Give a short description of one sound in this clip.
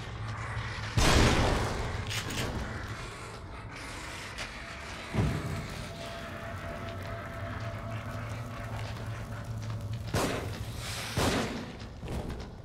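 A gun fires with loud bangs.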